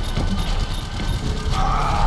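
Energy beams crackle and buzz in a fight.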